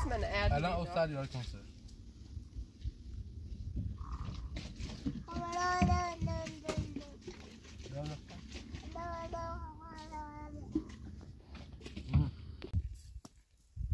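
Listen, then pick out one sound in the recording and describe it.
A small child chatters in a high voice nearby.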